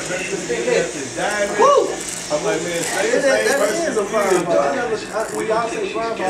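Electric hair clippers buzz close by.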